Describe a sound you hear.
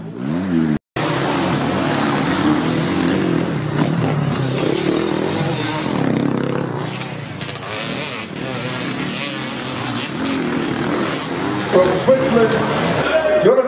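Motorcycle engines roar on and off from nearby.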